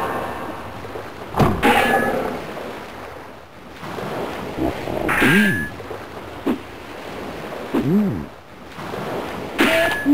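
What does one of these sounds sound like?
A sword slashes through the air.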